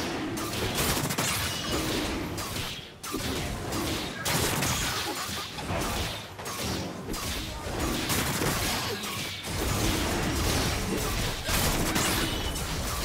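Weapon hits clash and thud repeatedly.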